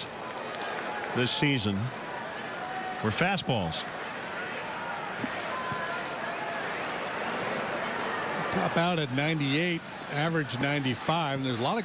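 A crowd murmurs faintly in a stadium.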